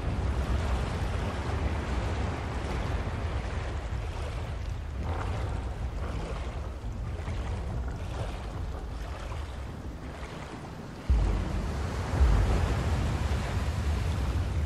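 Water rumbles low and steadily, heard from underwater.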